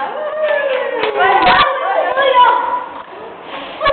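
A young girl blows out candles with a short puff.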